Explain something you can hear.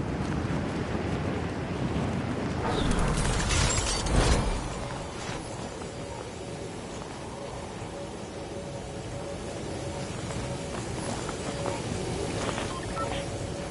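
Wind rushes steadily past a gliding figure, swelling loudly for a moment.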